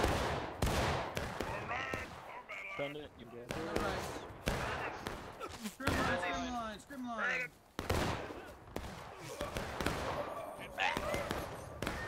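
Rifle shots crack repeatedly nearby and in the distance.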